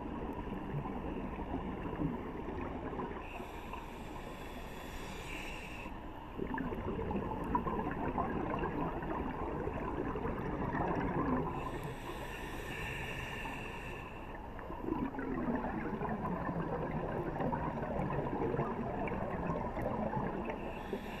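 Air bubbles gurgle and rumble underwater as a diver breathes out.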